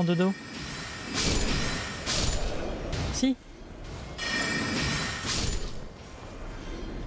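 Magic spells whoosh and crackle in loud bursts.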